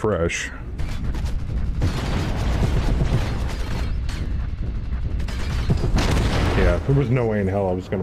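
Weapons fire and explosions rumble in a rapid burst.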